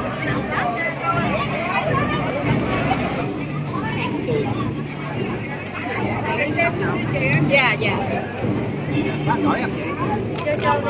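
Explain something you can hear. A crowd of men and women chatter loudly close by.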